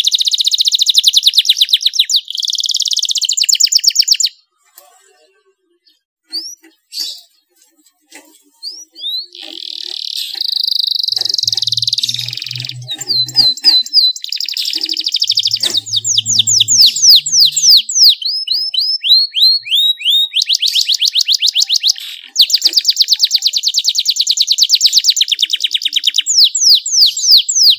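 A small bird sings loud, fast trills and chirps close by.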